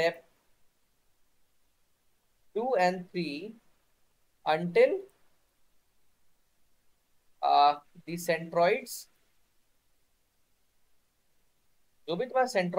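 A man speaks calmly in short phrases through an online call, with pauses.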